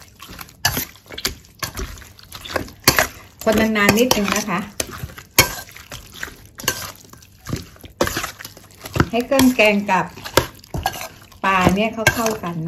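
Raw meat squelches as a hand mixes it.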